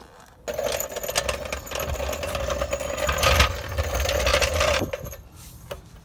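A hydraulic floor jack clanks and creaks.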